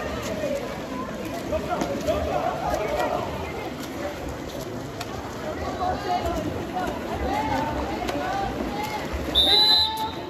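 Water polo players splash in a pool.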